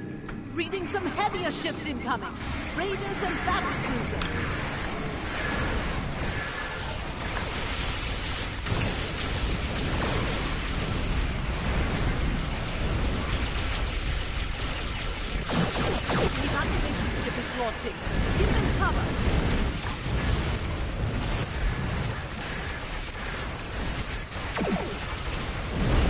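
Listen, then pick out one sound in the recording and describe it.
Laser weapons fire in bursts in a space battle game.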